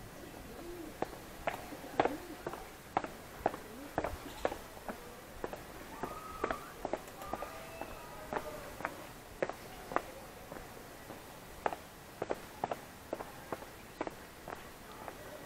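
Footsteps tap on stone steps outdoors.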